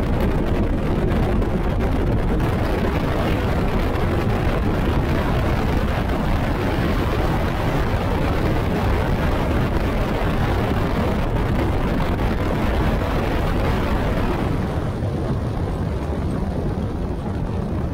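Water splashes and hisses against the hull.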